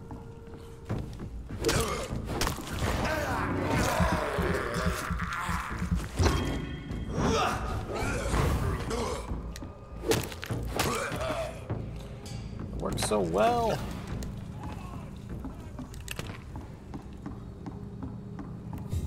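Heavy footsteps thud on wooden boards.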